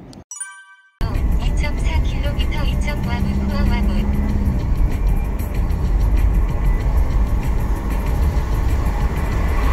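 A car drives along a wet road with a steady engine hum and tyre hiss.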